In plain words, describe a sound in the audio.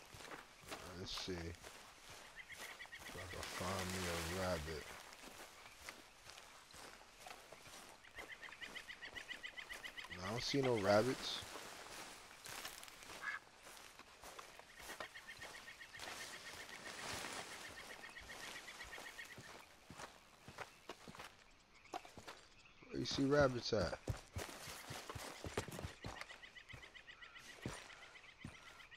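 Footsteps rustle through grass and brush.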